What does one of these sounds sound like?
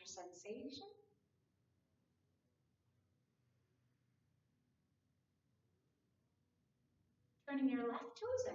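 A woman speaks calmly into a close microphone, pausing between phrases.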